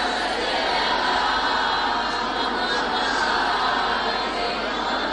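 A young woman speaks steadily through a microphone.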